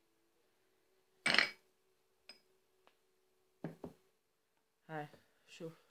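A small spoon scrapes and taps against a dish.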